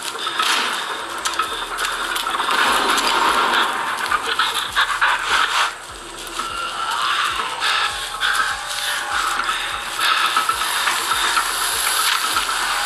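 A mobile game plays loud, noisy sound effects through a small phone speaker.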